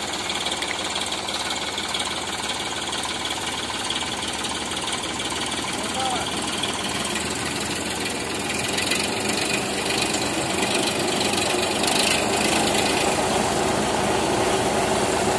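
A tractor engine runs with a low rumble.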